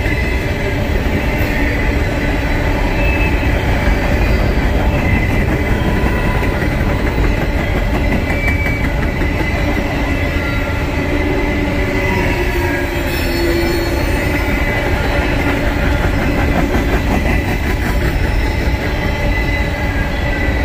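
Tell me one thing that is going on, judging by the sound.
Steel wheels squeal faintly on the track.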